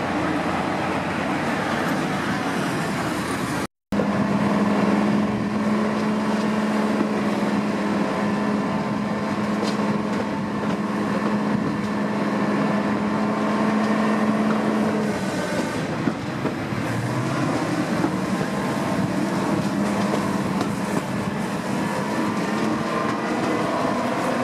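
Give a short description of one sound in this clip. A diesel locomotive engine drones steadily close by.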